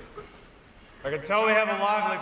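A man speaks firmly through a microphone in a large echoing hall.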